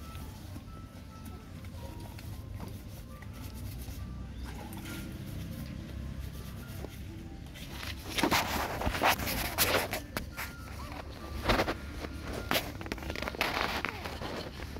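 Puppies lap and chew food from dishes.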